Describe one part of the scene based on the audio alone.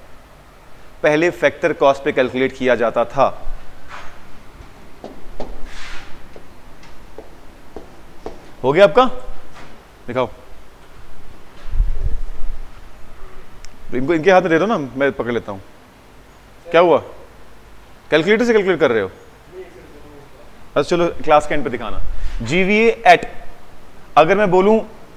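A man speaks calmly in bursts through a close microphone.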